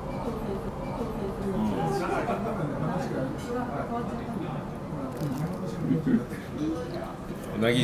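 A second man talks calmly nearby.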